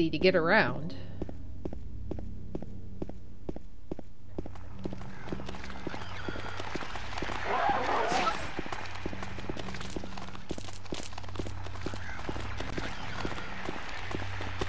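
Footsteps tap steadily on hard ground.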